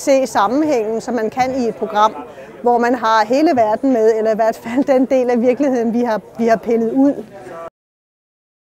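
An elderly woman speaks calmly and close to a microphone.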